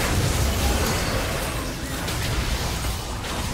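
Magic blasts burst with loud impacts.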